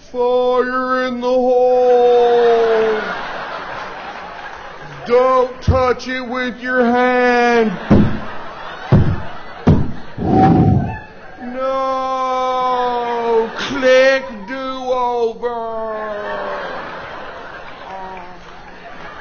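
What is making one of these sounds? A man sings loudly into a microphone, holding long notes.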